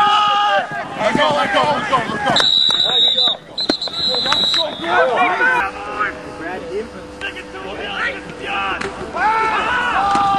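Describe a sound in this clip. A crowd of people shout and cheer loudly outdoors.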